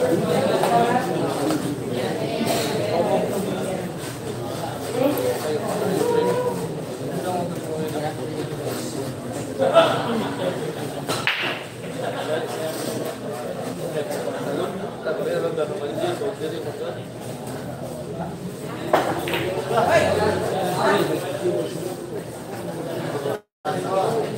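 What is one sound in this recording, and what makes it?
A crowd of young men chatter nearby.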